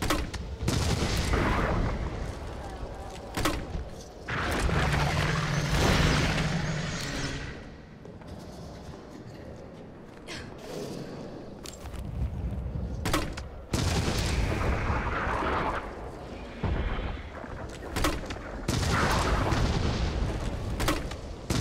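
Heavy explosions boom and crackle with fire.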